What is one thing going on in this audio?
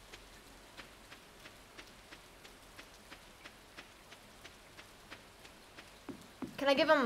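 Soft game footsteps tap at a steady pace.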